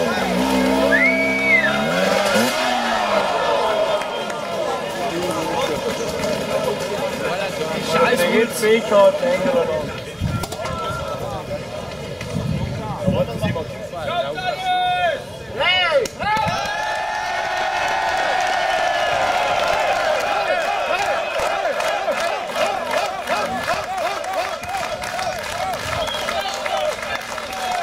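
A dirt bike engine revs and sputters up close.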